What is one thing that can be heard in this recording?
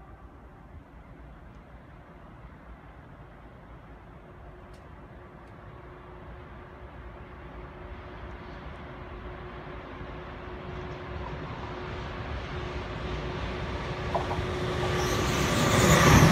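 A train approaches along the tracks with a rumble that grows steadily louder.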